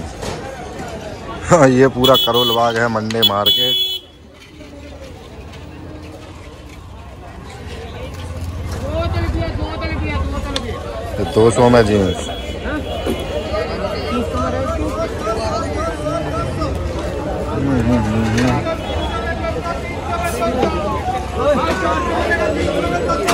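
A busy outdoor street market hums with the chatter of a crowd.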